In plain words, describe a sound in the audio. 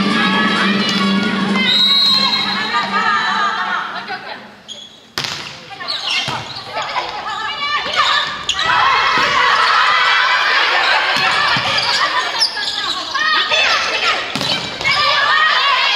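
Several young women call out and cheer loudly in a large echoing hall.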